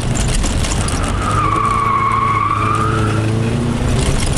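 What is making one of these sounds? Tyres squeal as the car slides through a turn.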